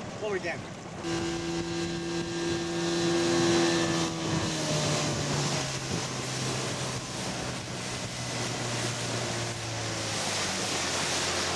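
Water rushes and sprays past a speeding boat.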